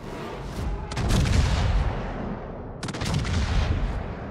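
Heavy ship guns fire with deep, rumbling booms.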